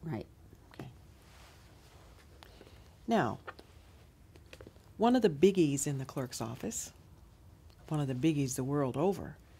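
A woman speaks calmly and warmly, close to a microphone.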